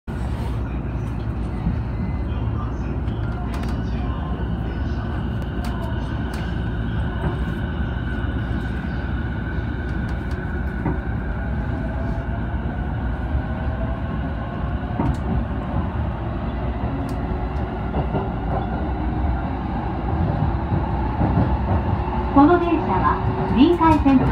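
Train wheels rumble and clack over rail joints.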